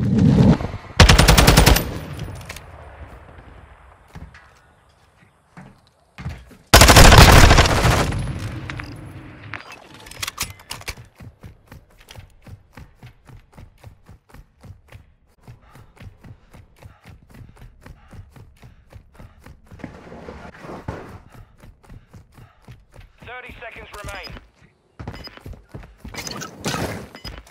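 A rifle fires loud rapid bursts of gunshots.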